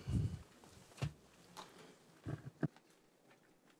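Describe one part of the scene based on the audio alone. Footsteps thud across a floor.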